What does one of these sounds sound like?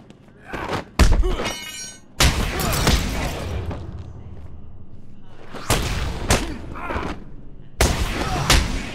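Heavy punches and kicks thud in a brawl.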